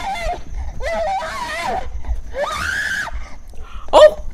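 A young person screams in panic.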